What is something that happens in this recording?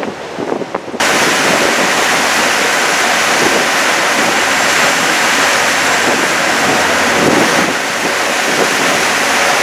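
Water churns and hisses in a boat's wake.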